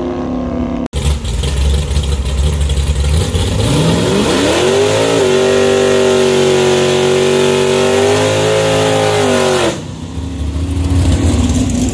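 A car engine rumbles and revs loudly up close.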